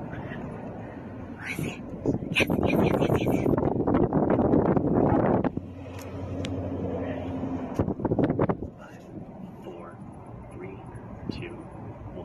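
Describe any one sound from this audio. A car engine hums from inside the vehicle as it drives slowly.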